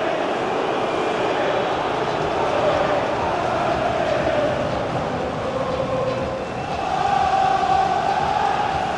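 A large stadium crowd sings and chants loudly and steadily.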